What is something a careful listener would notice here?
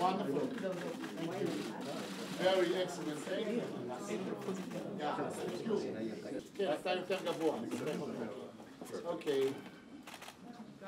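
Elderly men talk and laugh nearby.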